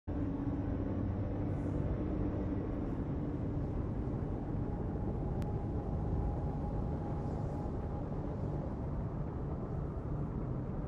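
Spaceship engines roar steadily.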